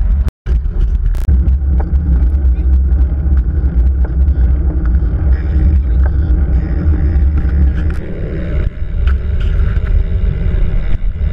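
Wind roars loudly against a microphone.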